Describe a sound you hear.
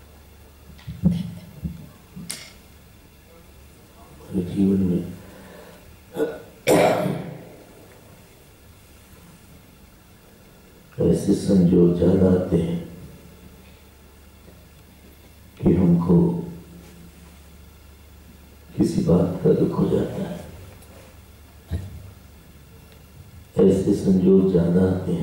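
A man speaks calmly into a microphone in short bursts with long pauses.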